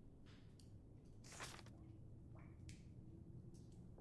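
A soft page-turn click sounds.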